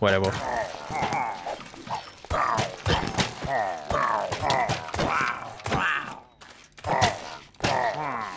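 A sword strikes with short sharp hits.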